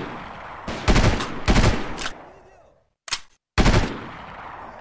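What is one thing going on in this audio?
Rifle shots crack loudly and echo across open ground.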